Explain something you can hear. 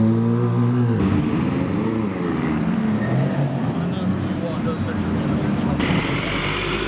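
A sports car engine revs loudly as the car pulls away.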